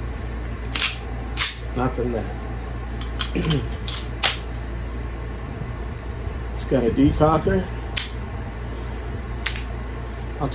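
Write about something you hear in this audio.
Metal parts of a pistol click and clack in a man's hands.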